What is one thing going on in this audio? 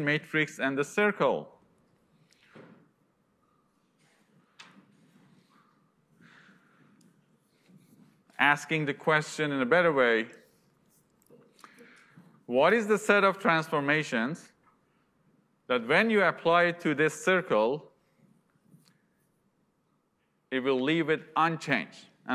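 A young man lectures calmly into a microphone, speaking in bursts with pauses.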